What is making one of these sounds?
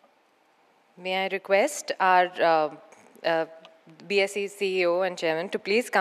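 A woman speaks calmly into a microphone over loudspeakers.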